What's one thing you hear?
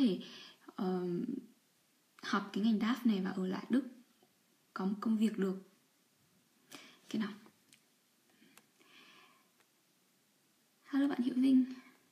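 A young woman talks calmly and close up, in short bursts with pauses.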